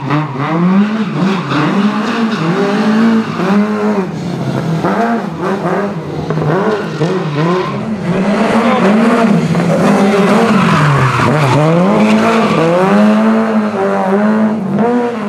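A rally car engine revs hard, rising and falling over and over.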